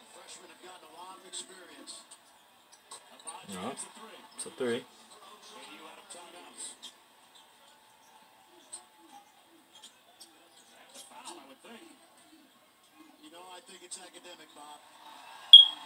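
A male sports commentator talks with animation through a television.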